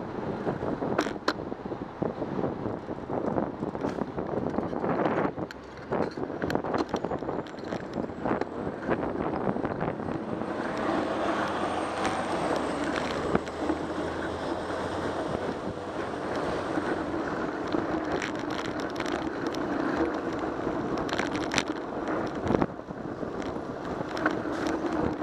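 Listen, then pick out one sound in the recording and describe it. Wind rushes steadily past the microphone outdoors.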